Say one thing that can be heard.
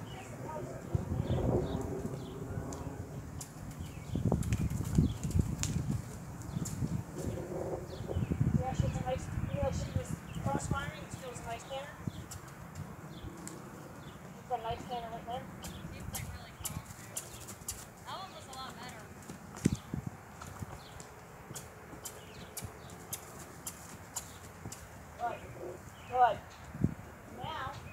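A horse's hooves thud on grass as it canters in circles.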